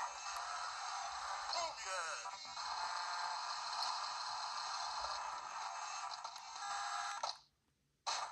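Chiptune game music plays through a small handheld speaker.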